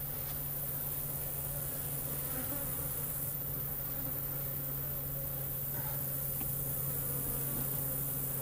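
A wooden hive box scrapes and knocks as it is lifted.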